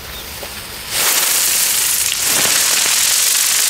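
A second firework fountain bursts into a loud hissing roar.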